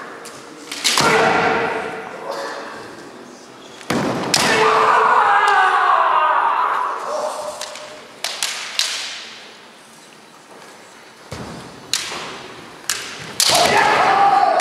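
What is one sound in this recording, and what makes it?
Bamboo swords clack sharply against each other and the armour.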